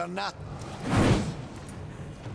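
A blade whooshes and strikes with a burst of crackling energy.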